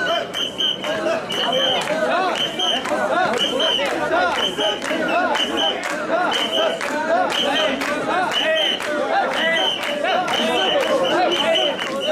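Many men shout and call out close by.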